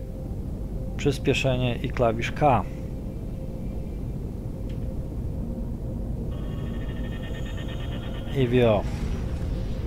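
A man talks calmly into a headset microphone.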